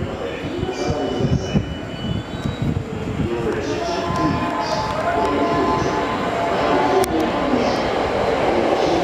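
An electric train rumbles along the tracks.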